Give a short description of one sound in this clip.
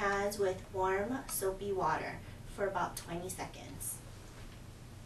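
A woman speaks with animation close to the microphone.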